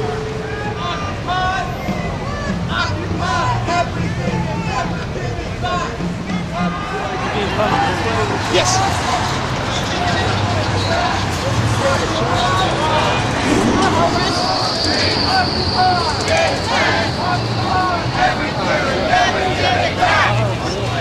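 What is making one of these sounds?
A crowd of men and women chatter and call out nearby, outdoors.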